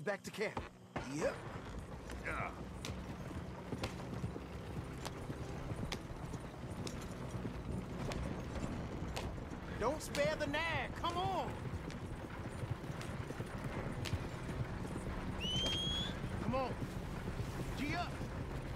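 A horse-drawn wagon rumbles and creaks along a dirt track.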